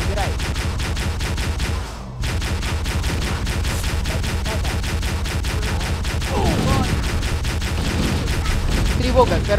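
A rifle fires rapidly in a long burst.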